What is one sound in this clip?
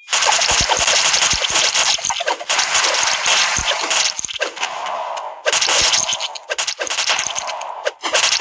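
Game sound effects of magic blasts and hits crackle rapidly.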